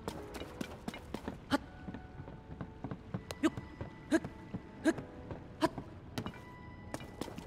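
Hands and feet clack on a wooden ladder during a climb.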